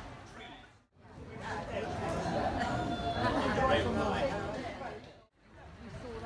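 A crowd of people chatter indoors.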